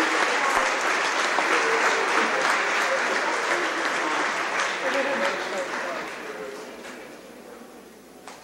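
A crowd applauds and cheers in a large echoing hall, then the applause fades.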